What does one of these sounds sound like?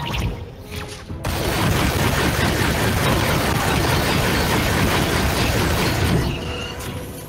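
A gun fires rapid, loud bursts of shots.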